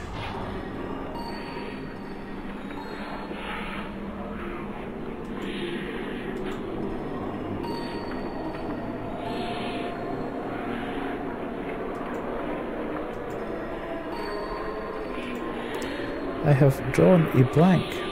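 A middle-aged man talks casually into a microphone.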